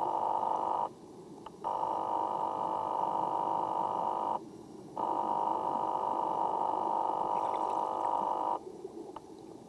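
A diver breathes noisily through an underwater regulator, in long hissing draws.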